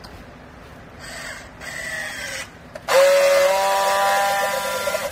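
A battery strapping tool whirs loudly as it tensions and seals a plastic strap.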